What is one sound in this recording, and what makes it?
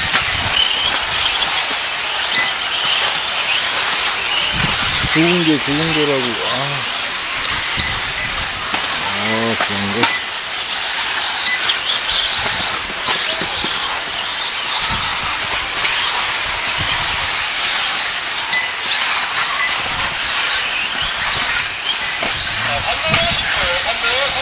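Small electric model cars whine at high speed around a dirt track.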